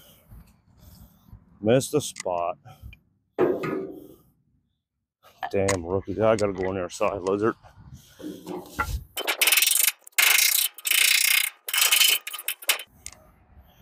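A hammer knocks on metal.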